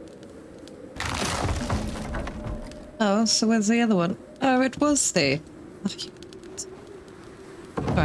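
Heavy wooden logs thud and clatter as they tumble down.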